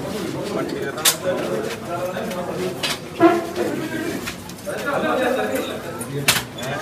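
Several men talk over one another in a crowd nearby.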